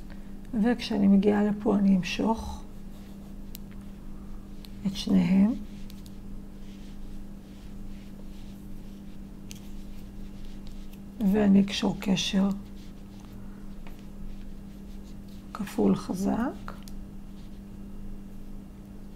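Yarn rustles softly as it is drawn through crocheted stitches.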